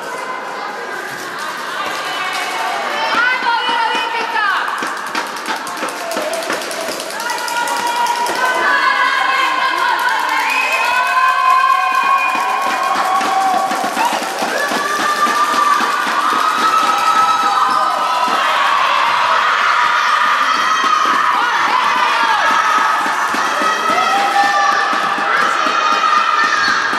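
Young girls shout and call out across a large echoing hall.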